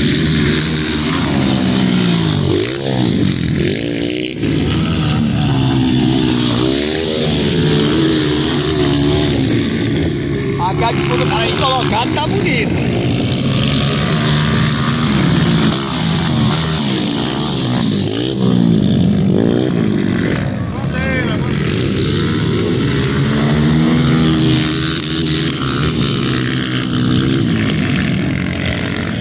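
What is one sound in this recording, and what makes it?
Dirt bike engines whine and rev as motorcycles race past.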